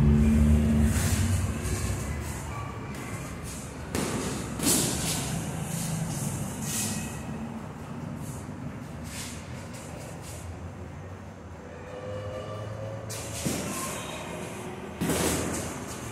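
Boxing gloves thud against each other in quick blows.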